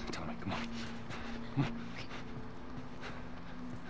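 A young girl answers softly.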